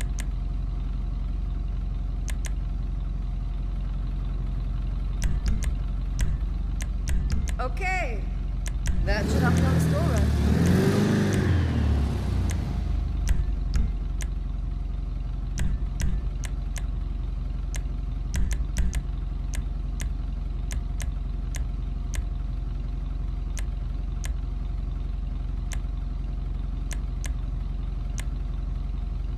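Short electronic clicks tick again and again.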